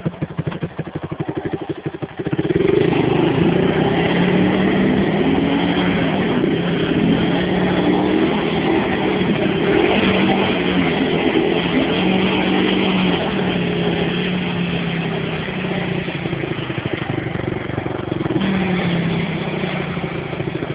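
A quad bike engine revs loudly and strains.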